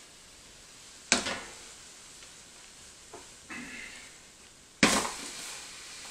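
A metal pot clanks.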